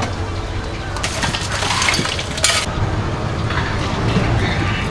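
Plastic bottles and lids clatter on a counter.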